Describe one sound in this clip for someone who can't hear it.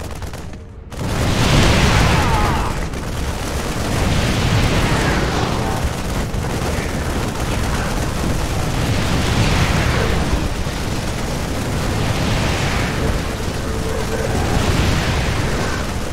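Guns fire rapidly in a loud battle.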